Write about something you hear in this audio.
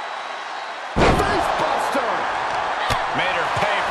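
A body slams hard onto a wrestling ring mat.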